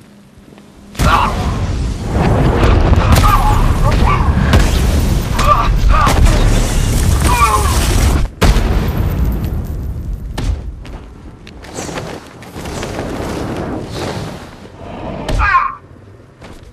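Punches and kicks thud in a rapid brawl.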